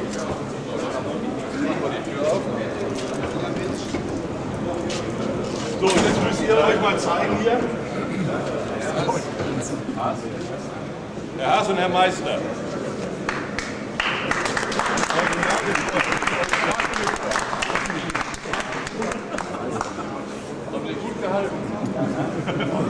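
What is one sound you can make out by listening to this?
Several men talk at once nearby, their voices echoing in a large hall.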